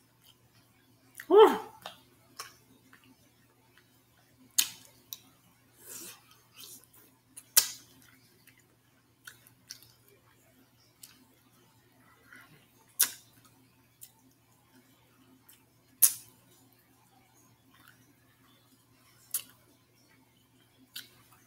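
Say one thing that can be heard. A woman chews and smacks food noisily close to a microphone.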